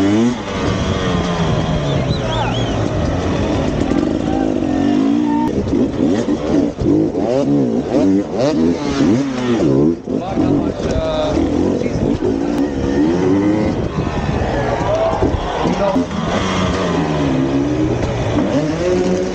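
A dirt bike engine revs hard and rises and falls in pitch.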